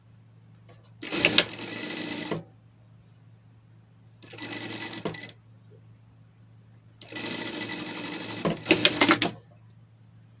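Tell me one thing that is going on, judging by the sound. A sewing machine runs in short, fast bursts, whirring and rattling.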